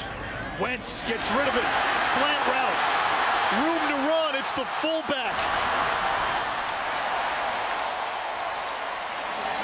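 A large crowd roars and cheers in a big stadium.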